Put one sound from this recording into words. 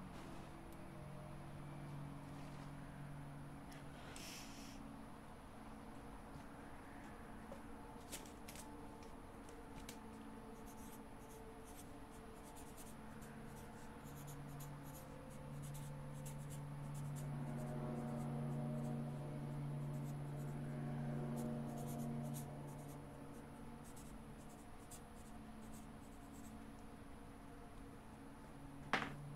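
A low, eerie drone hums steadily and swells midway.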